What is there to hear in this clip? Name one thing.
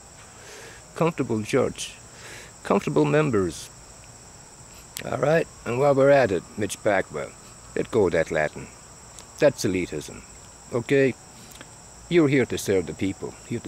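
An older man speaks calmly and close by, with pauses.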